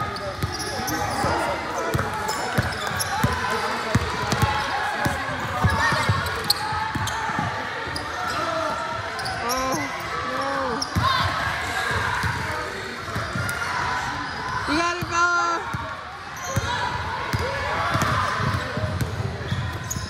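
Young women players shout and call out across an echoing gym.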